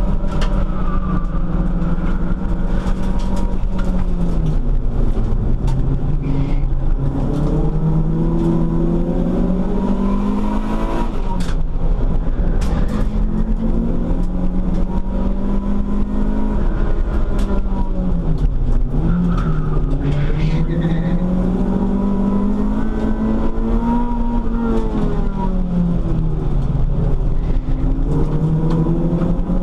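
A car engine roars loudly up close, its pitch rising and falling as it revs through the gears.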